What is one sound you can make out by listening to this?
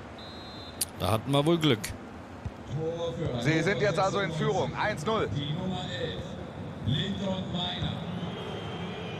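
A young man talks with excitement into a close microphone.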